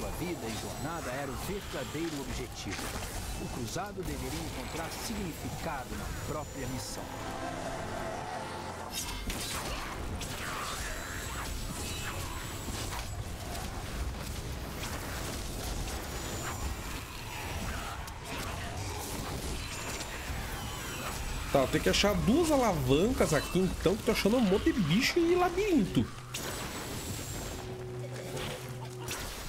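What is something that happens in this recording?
Game spell effects crackle and blast.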